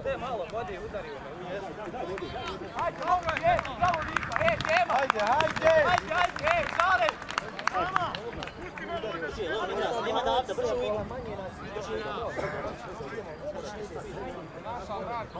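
A crowd of spectators shouts and chants outdoors.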